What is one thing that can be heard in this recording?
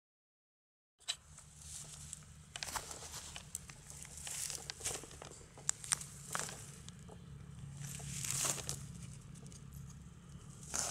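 Fingers scrape and crumble dirt off a rusty metal object.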